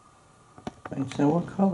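A parrot chatters in a low, voice-like mumble.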